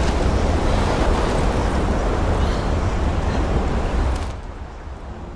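Strong wind blows.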